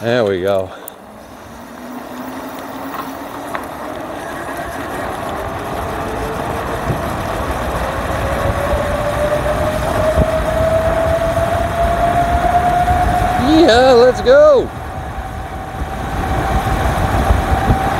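Bicycle tyres hum on the tarmac, rising in pitch as the bicycle speeds downhill.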